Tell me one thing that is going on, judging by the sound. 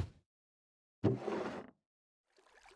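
A wooden barrel creaks open.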